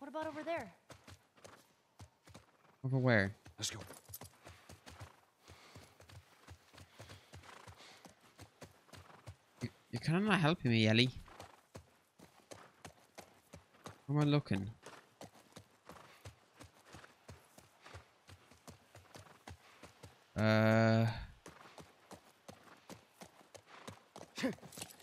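Horse hooves clop steadily on the ground.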